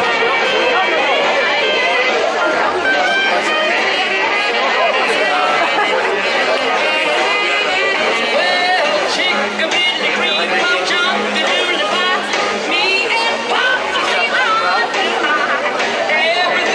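A large crowd chatters and laughs close by, outdoors.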